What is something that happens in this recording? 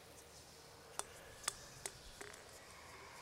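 A ball bounces several times on pavement.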